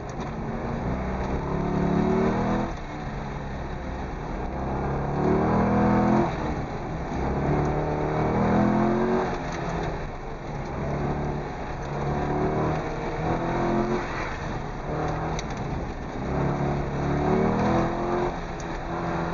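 A car engine revs hard, rising and falling in pitch as the car speeds up and slows.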